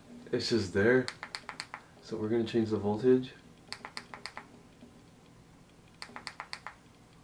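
A device button clicks rapidly several times.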